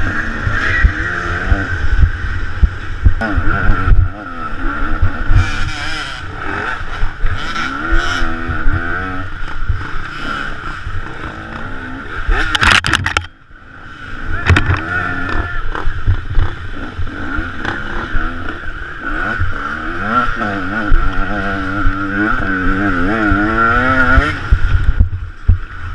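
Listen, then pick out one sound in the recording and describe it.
A motorbike engine revs up and down close by.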